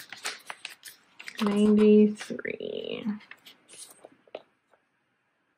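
Magazine pages rustle and flip as they are turned by hand.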